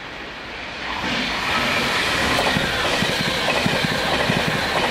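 An electric Pendolino train rushes past at speed.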